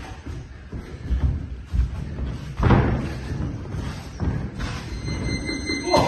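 Boxing gloves thud against pads and bodies in quick bursts.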